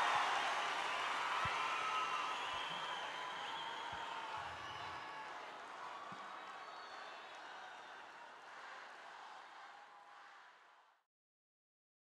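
A large crowd cheers and whistles in a huge echoing arena, slowly fading away.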